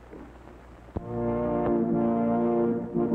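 A harp plays a gentle melody.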